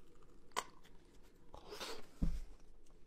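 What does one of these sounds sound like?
A man crunches into food close up.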